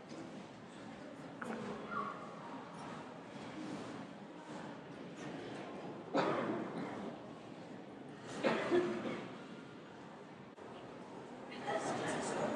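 A crowd of people murmurs and chatters nearby in an echoing hall.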